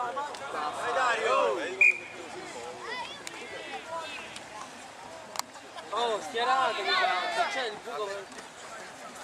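Several young men shout and cheer outdoors.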